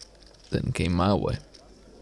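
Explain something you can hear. Poker chips clack together.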